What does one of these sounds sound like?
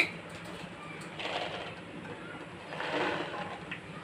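Chickpeas tumble and splash into a pot of water.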